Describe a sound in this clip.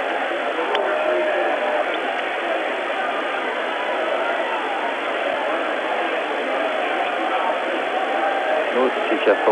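A large crowd cheers and roars loudly in an echoing arena.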